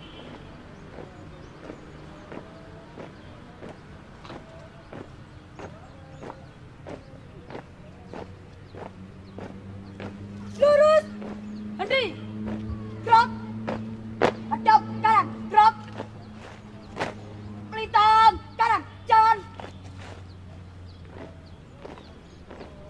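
Many feet stamp on pavement in a steady marching rhythm outdoors.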